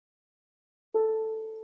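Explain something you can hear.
A cello and clarinet begin to play.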